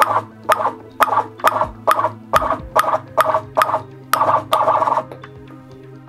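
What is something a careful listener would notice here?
A ping-pong ball bounces steadily on a paddle with quick, even taps.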